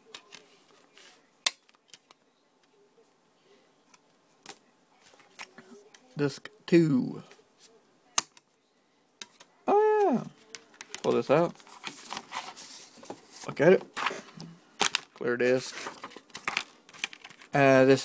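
A plastic DVD case is handled and clicks.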